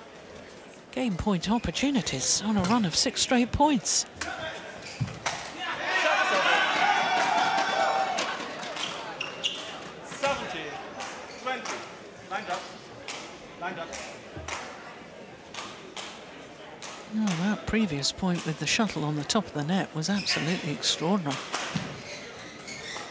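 Rackets strike a shuttlecock with sharp pops in a large echoing hall.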